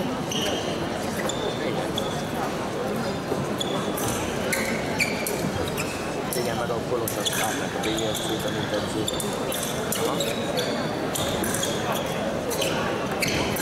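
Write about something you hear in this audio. Fencing blades click and clash sharply.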